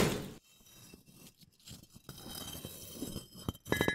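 Sharp scratches scrape across a plaster wall.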